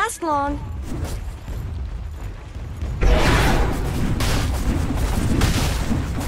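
Magic spells and weapons clash and burst in a fight.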